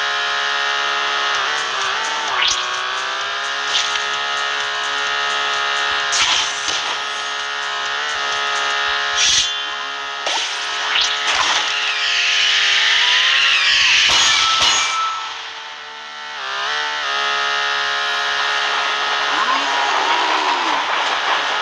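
A game engine drones steadily as a toy truck races.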